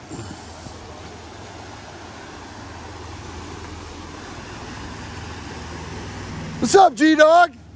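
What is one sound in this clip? Fast water rushes loudly over rapids outdoors.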